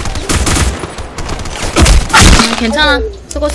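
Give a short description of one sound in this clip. A rifle fires in rapid bursts of loud sharp shots.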